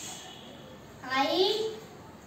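A young boy calls out with a rising voice, close by.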